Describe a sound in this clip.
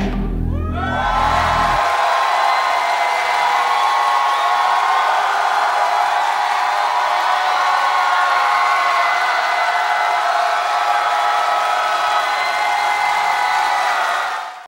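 Young women sing through headset microphones.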